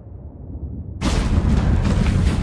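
A fire bursts up and roars.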